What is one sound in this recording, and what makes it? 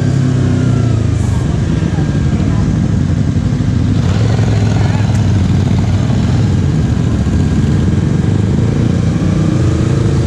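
Other motorcycle engines rumble nearby.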